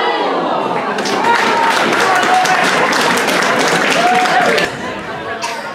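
A small crowd claps and cheers.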